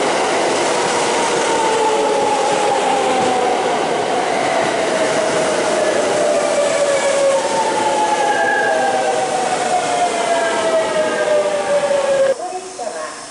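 Train wheels squeal with a slowly falling pitch.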